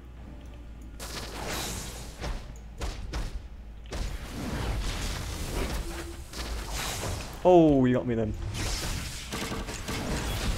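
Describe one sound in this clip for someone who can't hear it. Punches and energy blasts crash in quick bursts during a fight.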